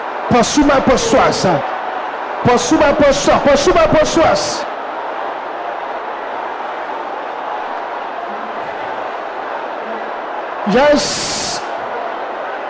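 A man preaches forcefully into a microphone.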